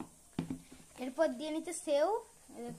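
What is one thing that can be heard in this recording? A young child speaks in a high voice close by.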